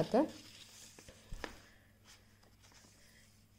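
Paper rustles as sheets are moved about.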